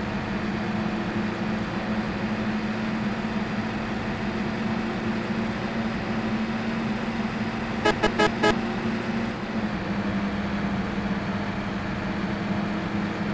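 A bus engine drones steadily while driving along a road.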